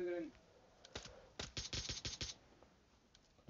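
An assault rifle fires rapid shots.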